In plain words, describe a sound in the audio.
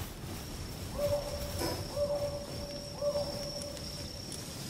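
A short chiming tone sounds as a menu opens.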